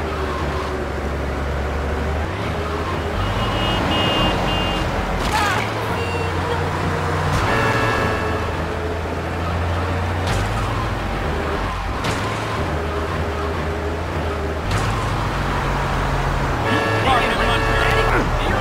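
A fire truck engine drones as the truck drives along a road.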